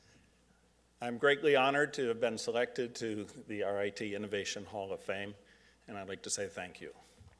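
A man speaks calmly into a microphone over loudspeakers in a large hall.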